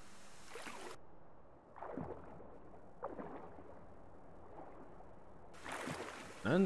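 Muffled water sounds swirl underwater.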